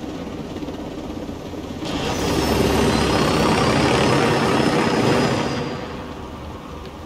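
A helicopter's engine and rotor roar loudly.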